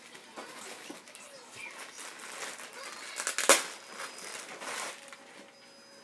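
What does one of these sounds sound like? A plastic bag crinkles in someone's hands.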